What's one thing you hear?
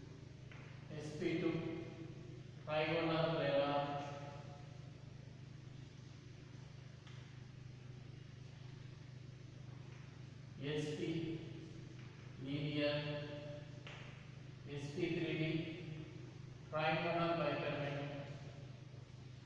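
A man speaks aloud in short bursts.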